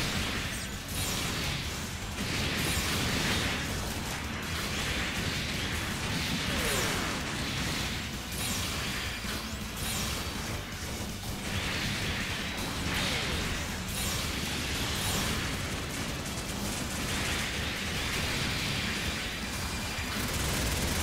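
Energy swords clash and swoosh repeatedly.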